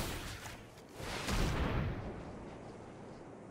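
A magical sound effect whooshes past.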